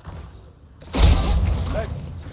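A shotgun fires a single loud blast.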